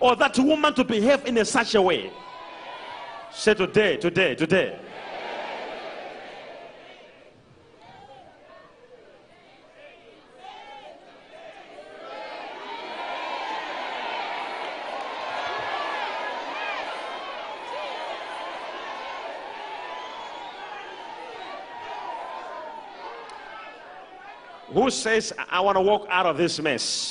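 A young man preaches loudly and forcefully through a microphone in a large echoing hall.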